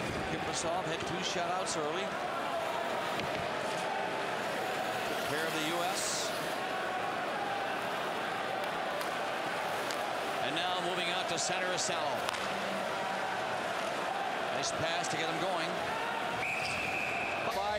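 Skate blades scrape and hiss across ice.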